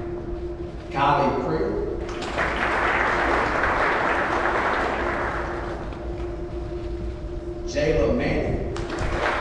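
A man reads out over a loudspeaker in a large echoing hall.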